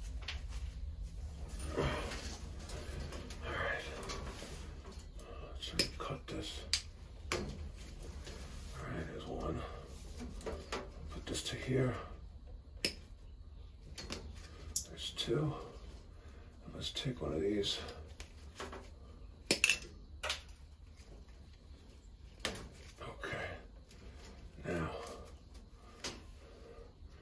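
Wires rustle and scrape as hands handle them.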